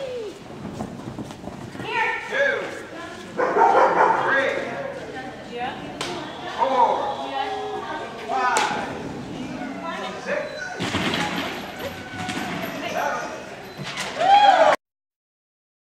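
A woman calls out commands to a dog with animation in a large echoing hall.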